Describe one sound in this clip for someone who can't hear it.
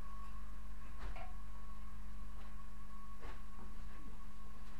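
A metal ladder clanks and rattles as it is moved.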